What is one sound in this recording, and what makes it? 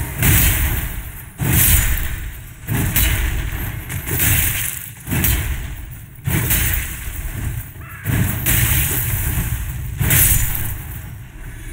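A heavy sword swings and slashes with loud whooshing impacts.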